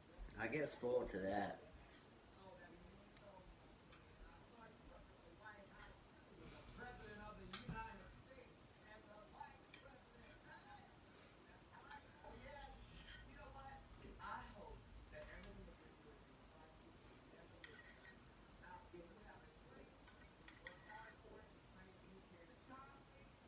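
A spoon scrapes and clinks against a ceramic bowl.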